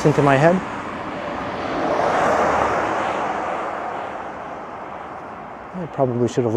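A car drives past on the street nearby.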